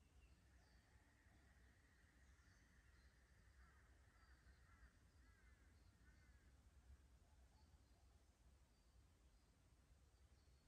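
A light breeze rustles through leaves and grass outdoors.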